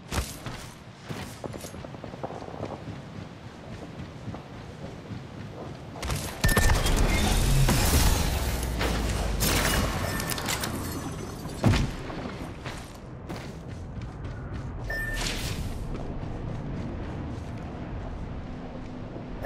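Footsteps run quickly across a metal floor.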